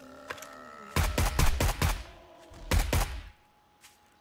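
A rifle fires several rapid bursts of loud shots.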